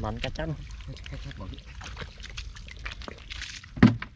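A caught fish flaps and slaps against wet mud.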